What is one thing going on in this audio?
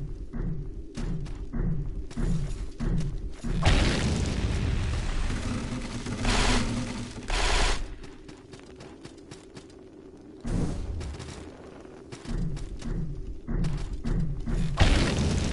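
Footsteps tread quickly on stone.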